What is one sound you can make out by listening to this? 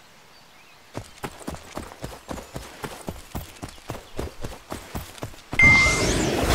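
Quick footsteps patter across grass.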